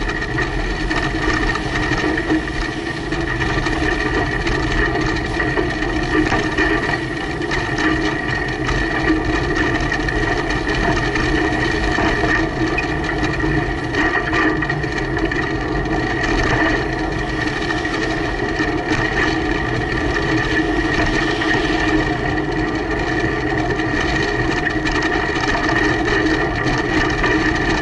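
A truck engine rumbles steadily ahead.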